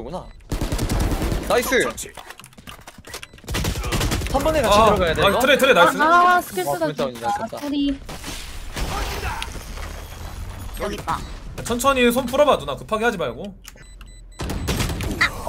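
Rapid gunfire bursts in a video game.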